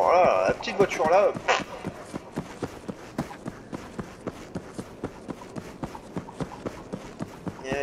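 Quick footsteps run steadily over hard ground.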